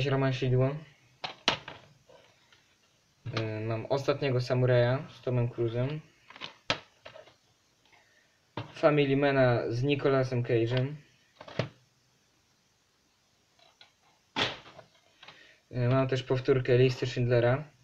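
A plastic disc case clicks and rattles as it is handled.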